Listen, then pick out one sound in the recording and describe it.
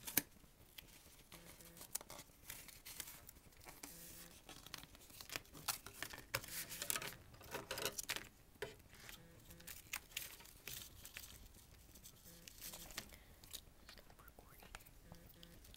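Tape crinkles and rustles as hands handle it.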